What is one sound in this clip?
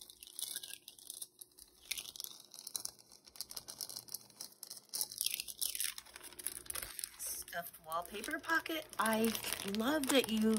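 Plastic bags crinkle and rustle under handling.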